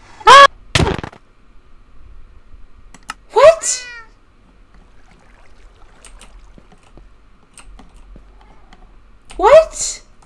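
A cat meows loudly several times.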